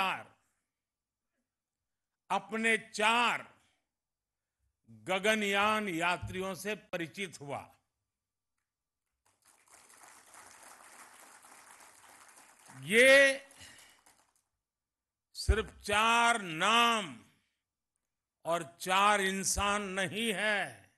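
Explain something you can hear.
An elderly man speaks with emphasis through a microphone, pausing between phrases.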